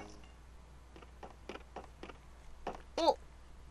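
Soft footsteps tap steadily across a floor.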